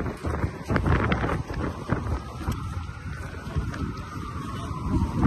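Footsteps hurry on pavement outdoors.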